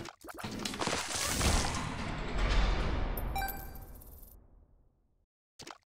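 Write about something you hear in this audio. Video game explosions boom and rumble, then fade away.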